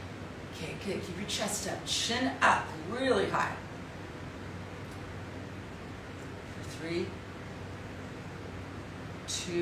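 A middle-aged woman speaks calmly and close by, with pauses.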